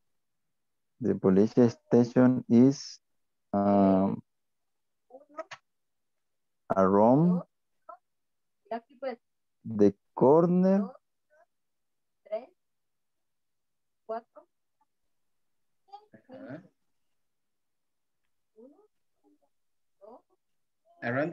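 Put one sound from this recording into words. A woman speaks through an online call in short, clear phrases with pauses.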